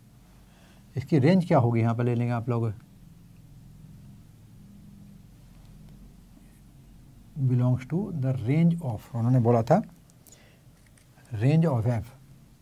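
An elderly man speaks calmly in short bursts, close by.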